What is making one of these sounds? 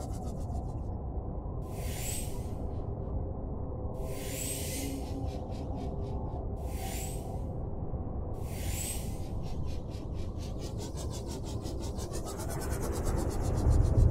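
A submarine engine hums low and steady.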